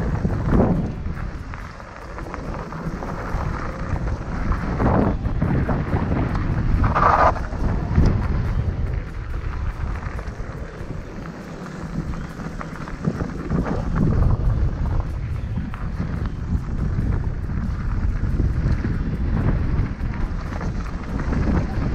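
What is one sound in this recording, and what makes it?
Bike tyres crunch and rattle over a gravel dirt trail.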